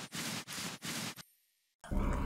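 Footsteps tap slowly on a stone floor.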